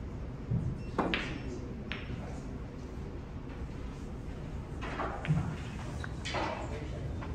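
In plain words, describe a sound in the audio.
A cue tip strikes a snooker ball.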